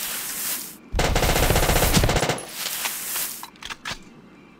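A grenade explodes with a loud, rushing roar.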